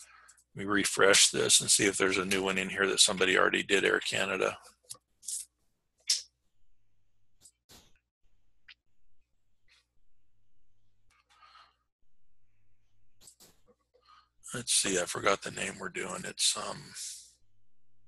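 A middle-aged man talks calmly into a close microphone.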